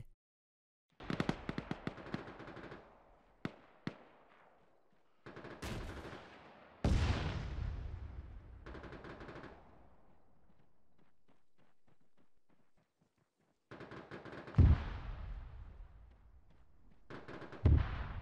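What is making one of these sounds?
Explosions boom in the distance, one after another.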